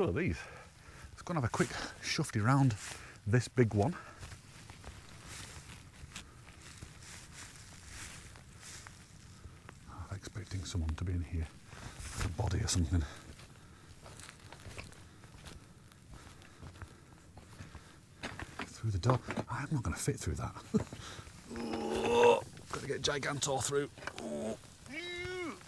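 A man speaks calmly, close by.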